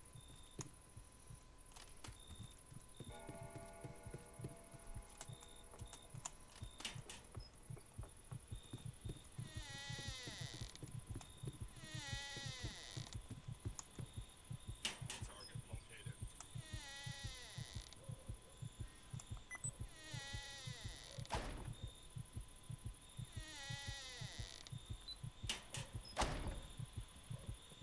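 Footsteps thud quickly and steadily on a wooden floor.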